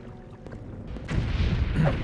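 A magical blast roars loudly.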